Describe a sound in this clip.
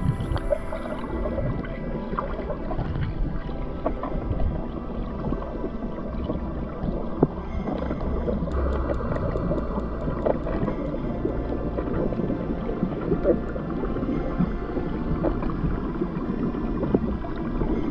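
Water gurgles and rumbles, muffled and heard from underwater.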